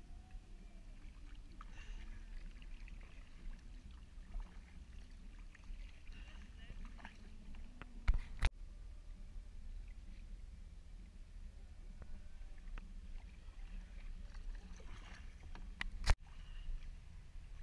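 A paddle splashes and drips in calm water close by.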